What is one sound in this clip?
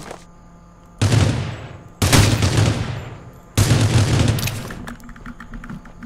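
Rifle gunshots fire in quick bursts.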